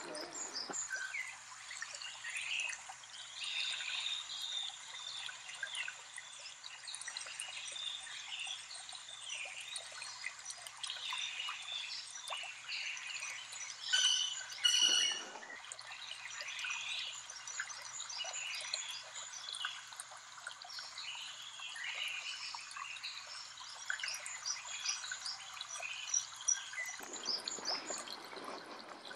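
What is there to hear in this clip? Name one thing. Footsteps crunch on a gravel path outdoors.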